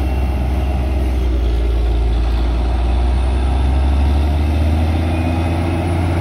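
A drilling rig's engine revs up and labours harder.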